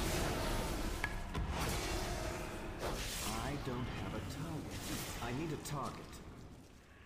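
Magic spells whoosh and burst in a fierce fight.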